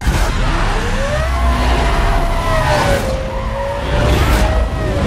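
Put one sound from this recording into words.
A race car engine roars at high revs, rising and falling in pitch.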